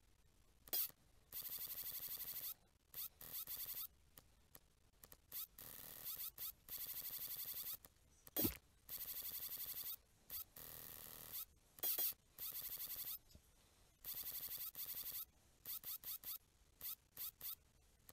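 A spring-loaded claw clanks as it grabs a piece.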